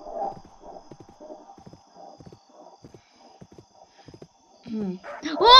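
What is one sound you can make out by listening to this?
A horse's hooves clop steadily on dirt.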